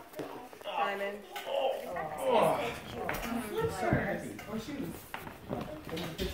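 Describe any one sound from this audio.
Several adults and children talk over one another in a room.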